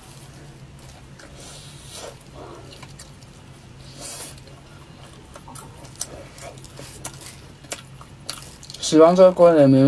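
A young woman chews food with soft smacking sounds.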